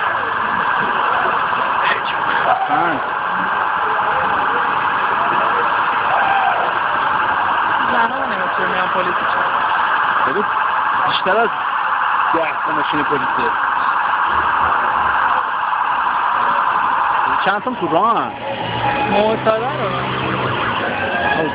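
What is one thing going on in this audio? Street traffic hums in the background.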